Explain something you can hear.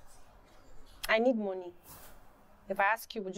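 A young woman speaks in a pained voice, close by.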